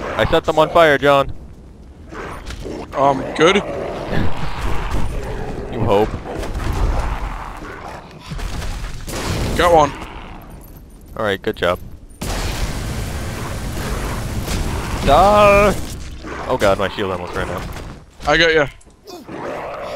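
Magic blasts boom and crackle in a fight.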